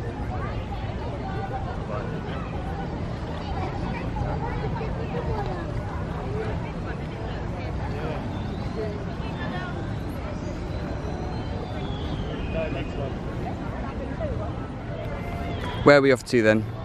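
A crowd of people chatter at a distance outdoors.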